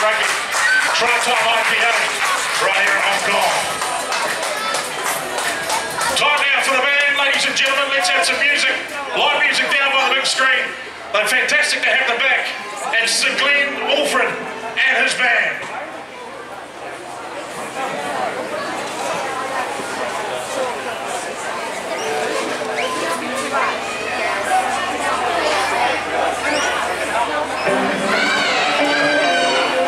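Young girls shout and cheer together outdoors.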